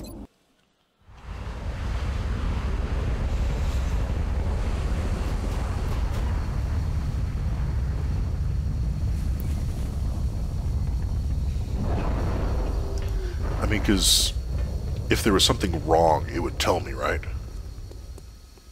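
A heavy aircraft engine roars with a steady low rumble.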